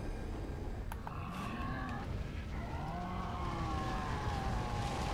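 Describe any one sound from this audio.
A monster lets out deep, growling roars.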